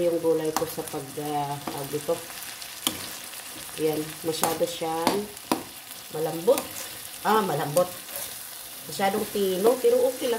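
A spatula scrapes and clatters against a pan.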